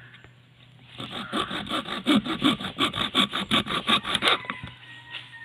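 A hacksaw cuts back and forth rapidly through bamboo.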